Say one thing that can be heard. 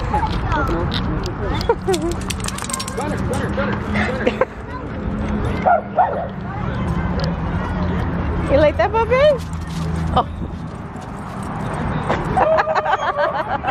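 Dogs whine and yelp excitedly close by.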